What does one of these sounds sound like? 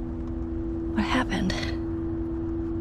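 A young girl speaks softly.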